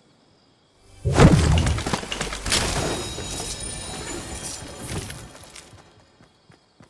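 A supply crate bursts open with a loud whoosh and rattle.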